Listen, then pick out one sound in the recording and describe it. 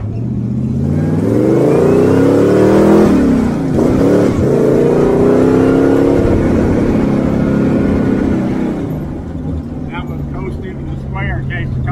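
Tyres rumble over a road.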